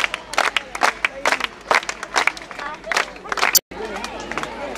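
Children clap their hands rhythmically.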